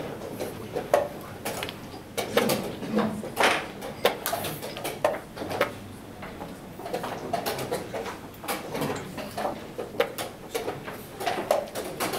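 Chess pieces tap down on a wooden board.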